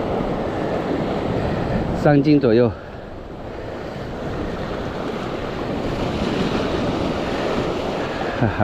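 Waves surge and wash against rocks below.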